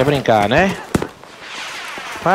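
Gunshots crack nearby.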